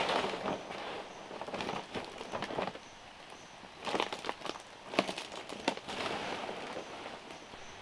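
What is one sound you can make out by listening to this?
Dry palm leaves rustle and crackle close by.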